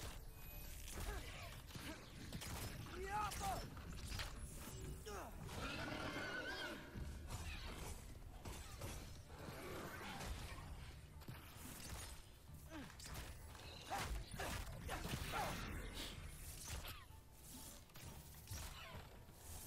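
Arrows strike with sharp, crackling impacts.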